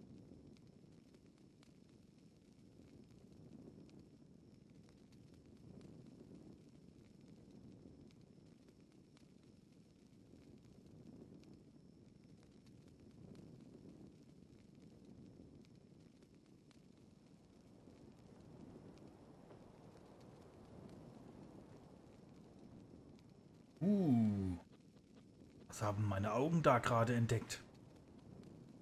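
A torch fire burns with a soft, steady roar.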